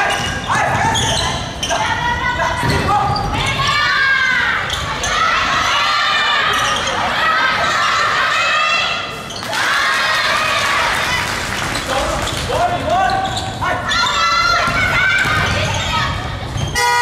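Sneakers squeak sharply on a hardwood court in a large echoing hall.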